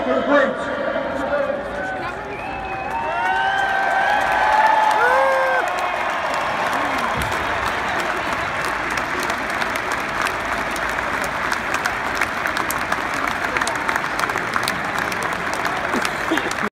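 A large crowd cheers and roars loudly outdoors.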